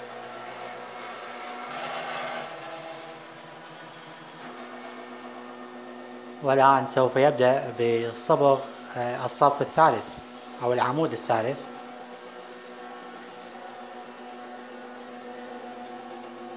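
A robotic arm's motors whir steadily as it moves.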